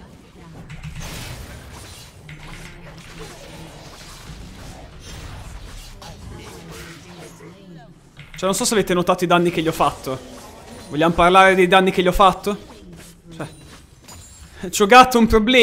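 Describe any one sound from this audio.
Video game fight effects whoosh and clash.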